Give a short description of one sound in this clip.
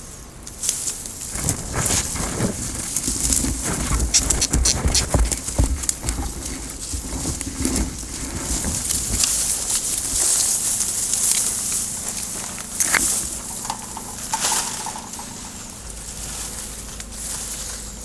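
Pruning shears snip through branches.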